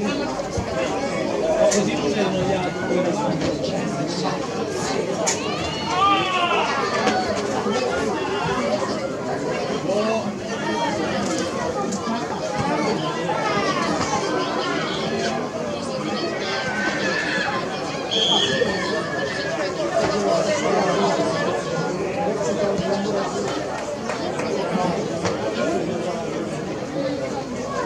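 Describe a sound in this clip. Children shout and call out across an open pitch.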